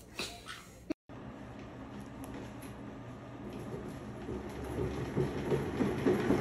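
A cat's exercise wheel rolls with a growing rumble.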